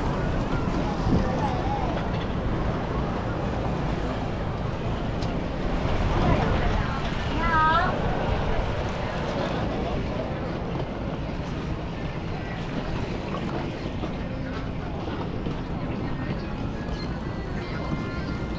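A suitcase's wheels rumble along on pavement.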